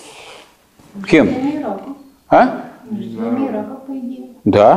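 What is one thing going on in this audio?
An elderly man lectures calmly.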